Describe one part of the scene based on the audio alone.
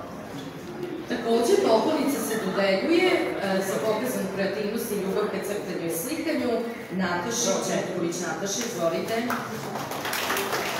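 A woman reads out calmly through a microphone.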